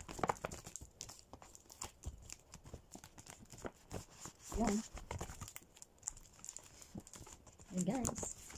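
Paper crinkles and rustles as a bag is handled up close.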